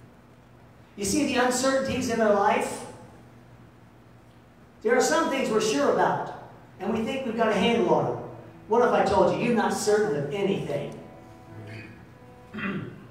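A man preaches with animation into a microphone, heard through loudspeakers in a large room.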